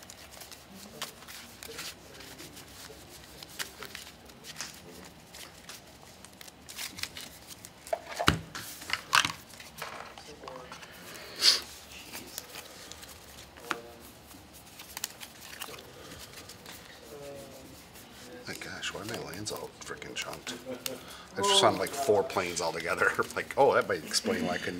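Playing cards riffle and slide as they are shuffled by hand.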